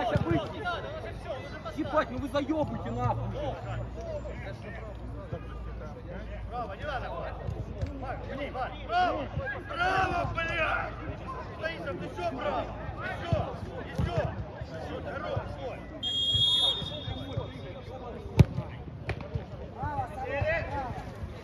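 Men shout and call to each other across an outdoor pitch.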